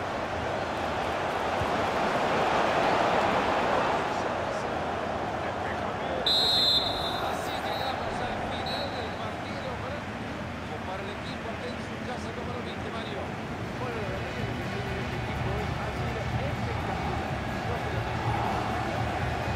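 A large crowd cheers and roars throughout a stadium.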